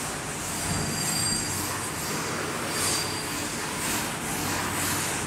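A cloth rubs and swishes across a chalkboard.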